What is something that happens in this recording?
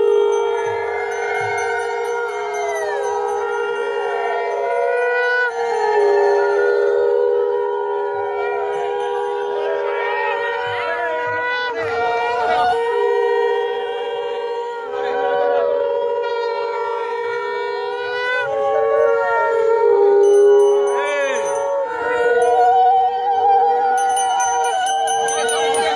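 Women ululate with long wavering cries.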